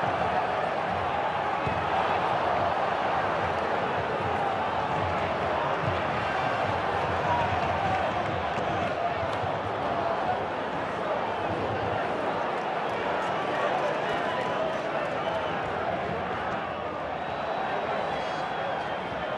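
A large crowd roars and chants steadily in a stadium.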